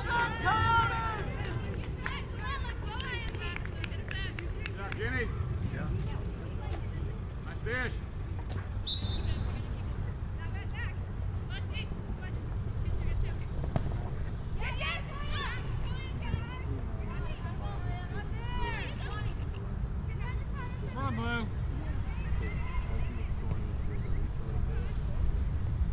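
Young women shout to each other in the distance across an open field.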